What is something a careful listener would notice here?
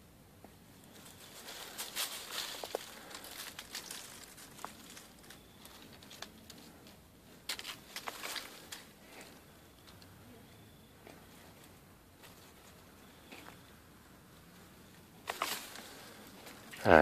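Leaves and branches rustle as a pole pushes through a tree.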